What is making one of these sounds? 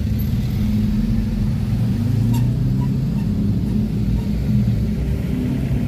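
Motorcycle engines rumble steadily close by in heavy traffic.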